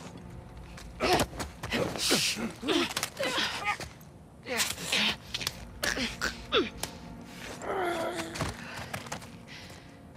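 A man gasps and chokes in struggle, close by.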